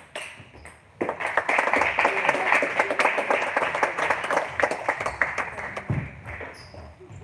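Players clap their hands quickly after the point.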